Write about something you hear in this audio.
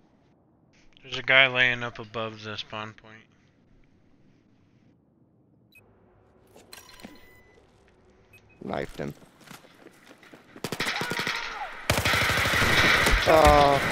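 A young man speaks calmly and close into a headset microphone.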